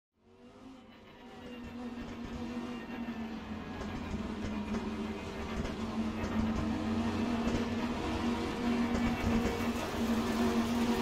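A racing car engine roars steadily and grows louder.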